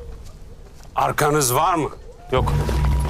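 A man asks a question in a tense voice.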